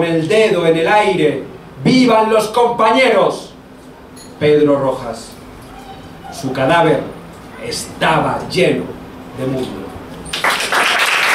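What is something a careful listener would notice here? A man speaks into a microphone, reading out calmly.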